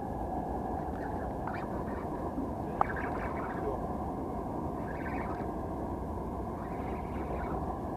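Wind rumbles steadily across open water.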